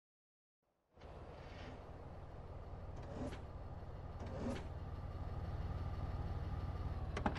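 A car engine rumbles as a car rolls into a driveway.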